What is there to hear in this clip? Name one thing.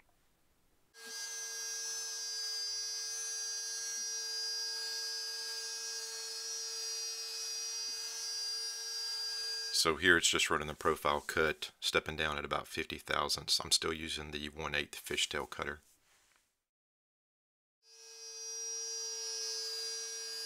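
A router spindle whines steadily as it carves wood.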